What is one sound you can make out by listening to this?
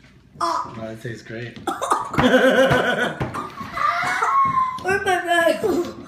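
A young boy laughs loudly.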